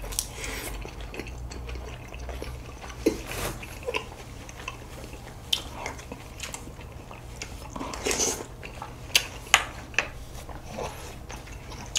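A young man chews and smacks his lips close to the microphone.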